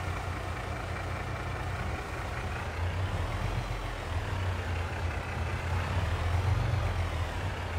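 Grain pours and hisses into a trailer.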